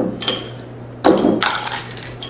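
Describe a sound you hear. A bottle cap pops off a glass bottle.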